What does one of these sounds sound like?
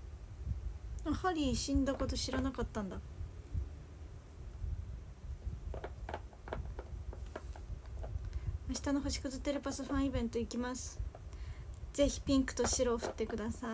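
A young woman talks casually, close to a microphone.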